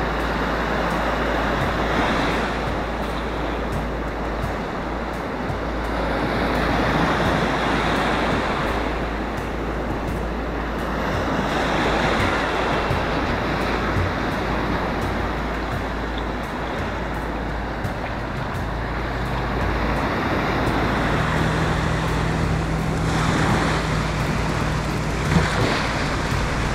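Waves break and wash in close by, in loud rolling surges.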